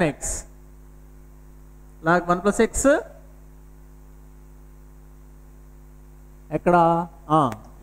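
A man speaks calmly, explaining in short phrases.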